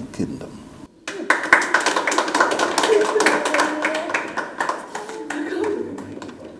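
Women cheer and ululate joyfully.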